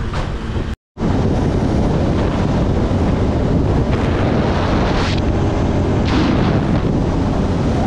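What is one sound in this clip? A quad bike engine hums steadily.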